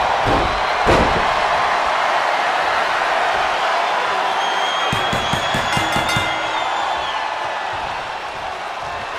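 A crowd roars and cheers steadily in a large arena.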